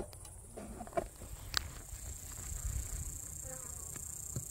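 A metal hive tool knocks and scrapes against wooden frames.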